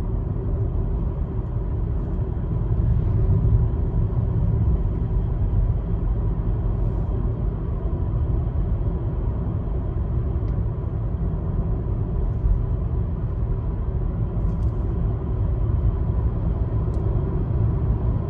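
Car tyres roll steadily over the road.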